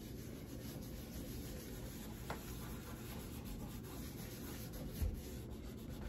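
A cloth rubs softly over leather.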